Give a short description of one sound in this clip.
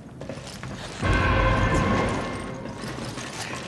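A bright chime rings as an item is picked up.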